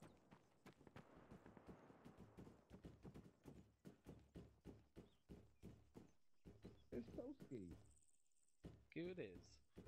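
Footsteps clang quickly up metal stairs.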